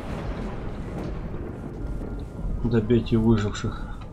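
A fire crackles close by.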